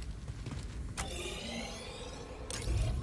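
A game menu opens with a sharp whoosh.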